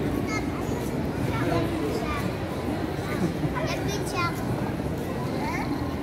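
A crowd chatters outdoors in the distance.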